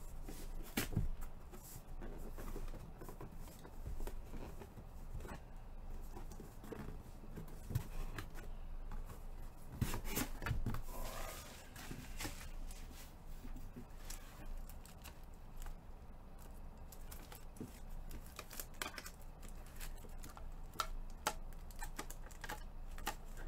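Cardboard boxes knock and scrape as hands handle them.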